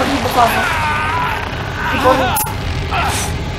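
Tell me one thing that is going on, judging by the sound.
A young man grunts and groans with effort.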